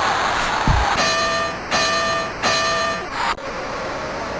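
A boxing bell rings three times.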